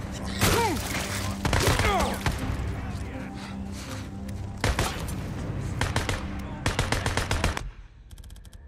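Gunshots crack rapidly, one after another.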